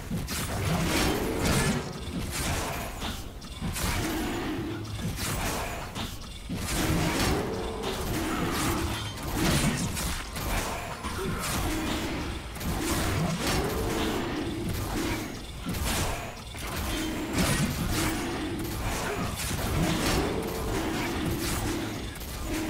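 Fantasy combat sound effects clash and burst with magical whooshes.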